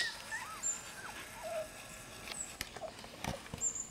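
A puppy whimpers and whines in high, short cries.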